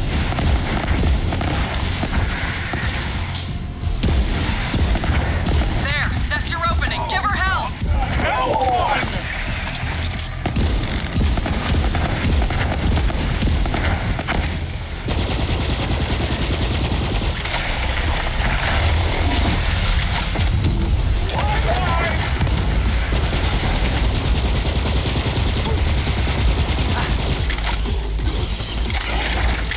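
Guns fire in rapid bursts with loud blasts and explosions.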